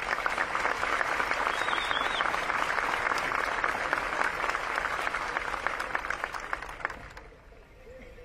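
A large crowd applauds outdoors.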